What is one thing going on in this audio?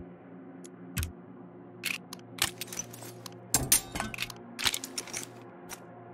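Short game menu clicks sound now and then.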